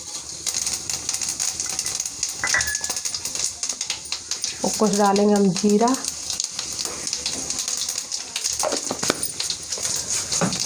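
Seeds sizzle and crackle in hot oil.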